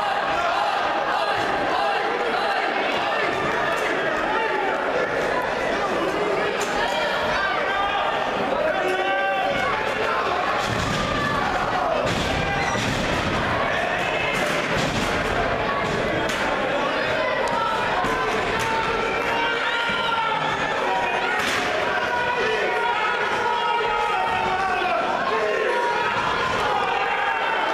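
A small indoor crowd cheers and shouts throughout.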